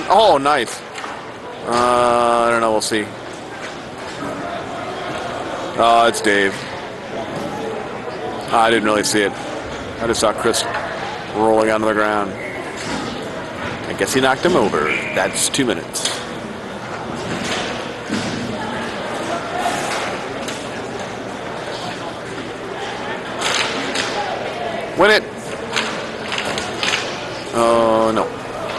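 Ice skates scrape and swish across an ice rink.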